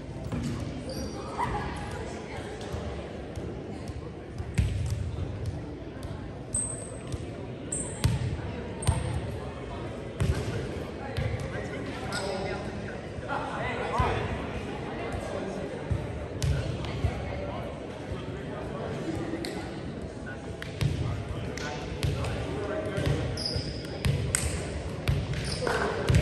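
Shoes squeak sharply on a gym floor, echoing in a large hall.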